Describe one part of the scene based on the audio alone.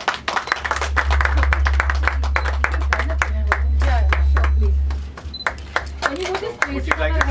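A crowd claps loudly and steadily.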